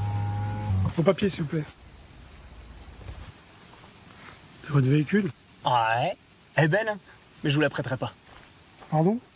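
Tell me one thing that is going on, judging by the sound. A young man speaks casually and close by.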